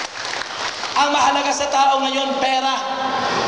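A man sings into a microphone, heard over loudspeakers in a large echoing hall.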